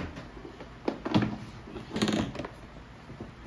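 A rice cooker lid clicks open.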